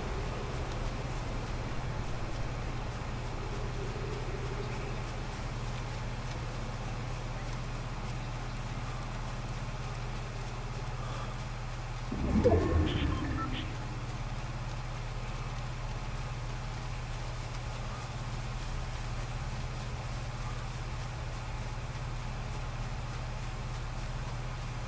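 Footsteps rustle through foliage in a video game.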